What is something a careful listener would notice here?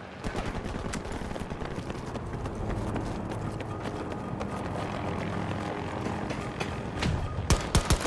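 Footsteps run quickly across hard ground and metal stairs.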